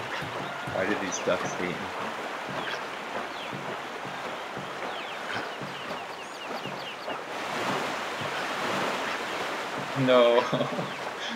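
A paddle splashes through water in quick strokes.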